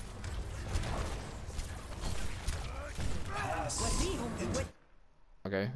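Weapons fire rapidly with loud blasts and bangs.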